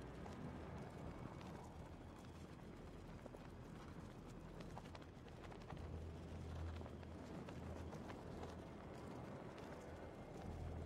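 Wind rushes steadily and roars low during a fast glide.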